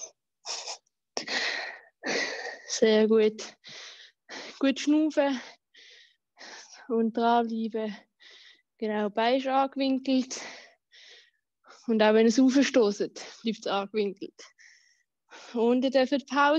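A young woman talks with animation, heard close through an online call.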